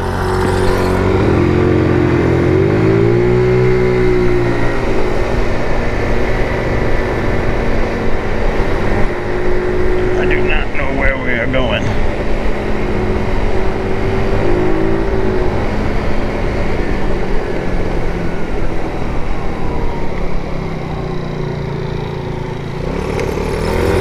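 A scooter engine hums and revs up and down close by.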